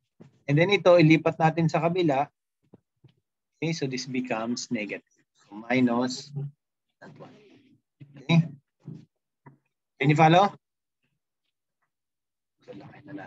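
A young man speaks calmly through an online call, in short bursts with pauses.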